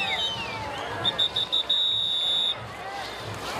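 A whistle blows in short shrill bursts, then one long blast.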